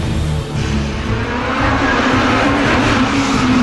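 Another racing car engine approaches with a rising roar.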